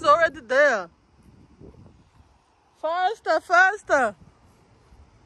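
A young child calls out loudly in a high voice.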